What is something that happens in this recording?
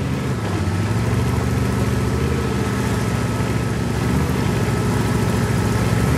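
A tank engine rumbles loudly as the tank drives over dirt.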